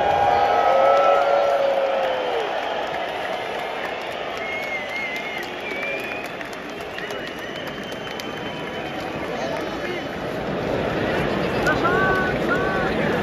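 A huge stadium crowd roars and cheers loudly in a large open arena.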